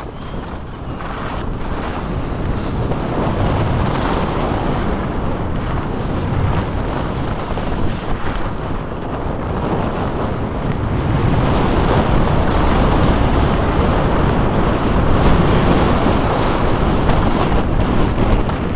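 Wind rushes loudly over a microphone outdoors.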